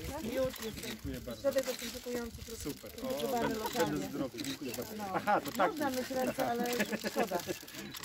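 Plastic wrapping crinkles as a gift basket is handed over.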